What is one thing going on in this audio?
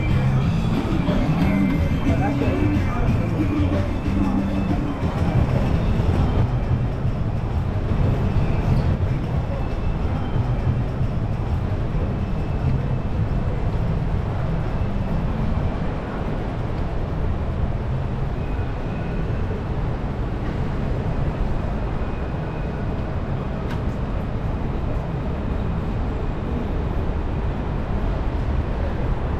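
City traffic hums steadily along a busy street.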